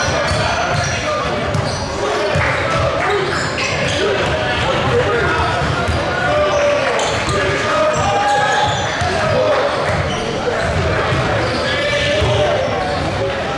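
Sneakers squeak on the hardwood floor.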